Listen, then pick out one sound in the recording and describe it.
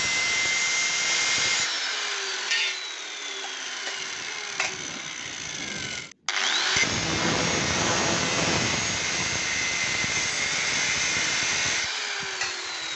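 An angle grinder's disc grinds harshly against metal.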